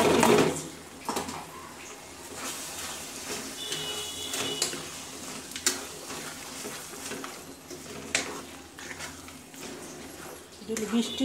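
A wooden spoon scrapes and stirs a sticky mixture in a pan.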